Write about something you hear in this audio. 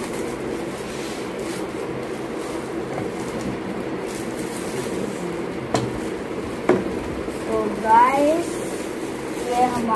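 Plastic wrapping crinkles as it is pulled off.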